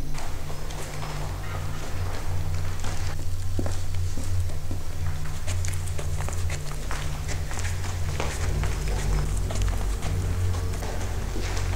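Footsteps echo along a tunnel.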